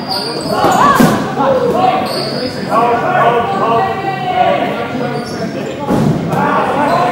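A ball thumps against hands and the floor.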